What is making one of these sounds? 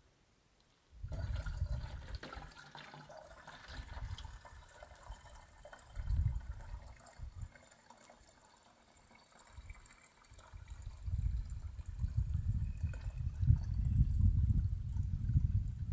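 Water pours from a plastic jug into a smaller plastic jug.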